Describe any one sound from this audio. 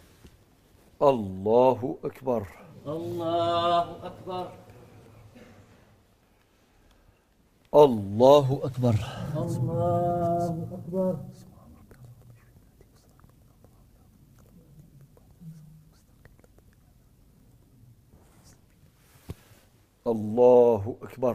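An elderly man chants loudly through a microphone in an echoing hall.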